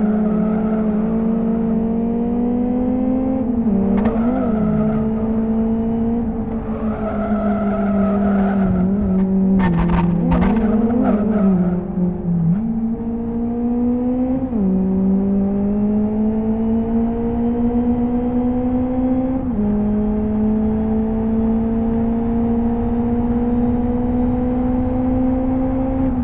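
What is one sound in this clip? A car engine drones steadily, its pitch climbing through the gears and dropping at each gear change.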